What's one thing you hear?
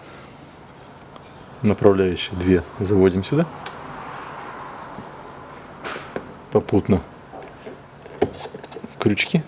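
Plastic trim clicks and rattles as it is handled.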